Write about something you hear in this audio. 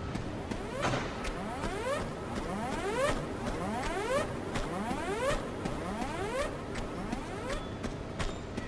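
Footsteps clang quickly on a metal floor.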